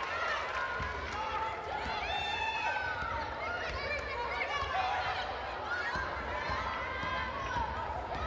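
A ball bounces on a hardwood floor.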